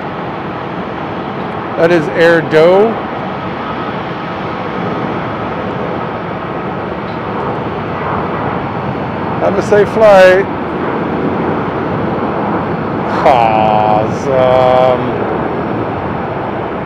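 Jet engines rumble steadily far off.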